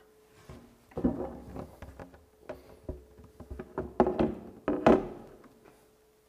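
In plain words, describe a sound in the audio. A rigid board knocks and clatters against a metal frame.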